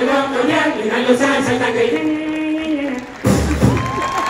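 A group of men and women sing together loudly through loudspeakers in a large hall.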